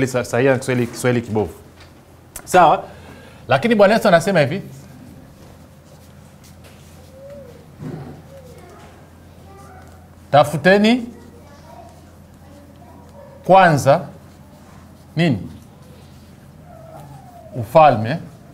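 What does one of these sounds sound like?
A man speaks slowly in short bursts, close and clear, with pauses between phrases.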